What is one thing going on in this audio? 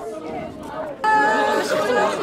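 A group of women wail loudly.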